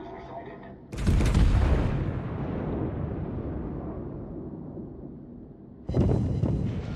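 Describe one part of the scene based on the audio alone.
Heavy naval guns fire with loud, deep booms that roll away.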